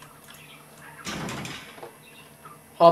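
A metal gate creaks open.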